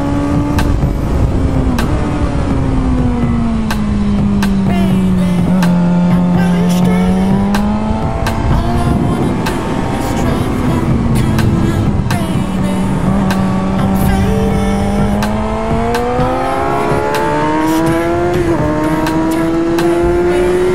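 A motorcycle engine roars steadily, its pitch falling through the bends and rising again on the straights.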